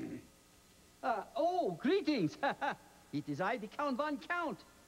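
A man speaks in a deep, theatrical voice with an accent.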